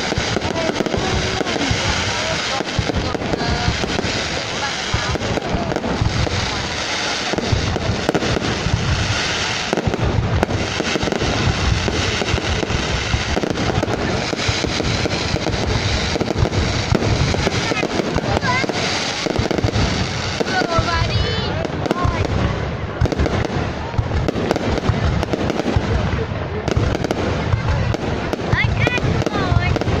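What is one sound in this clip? Rockets whistle and hiss as they rise.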